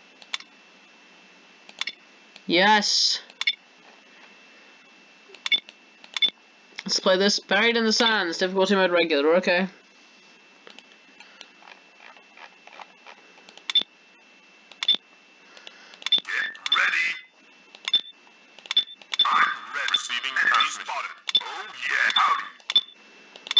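Short game menu clicks sound now and then.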